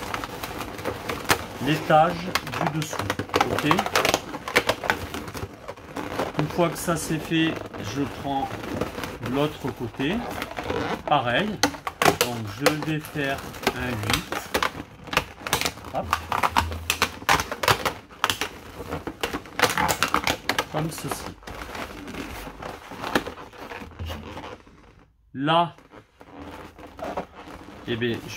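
Latex balloons squeak and rub as hands press them together.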